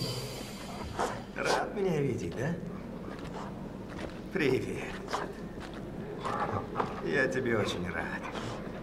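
A young man speaks warmly and softly, close by.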